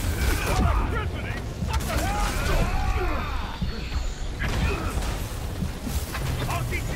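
Heavy blows thud and crash in a brawl.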